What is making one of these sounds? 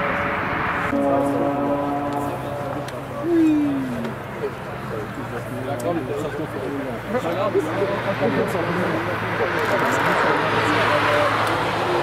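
A saloon car's engine hums steadily as it drives past.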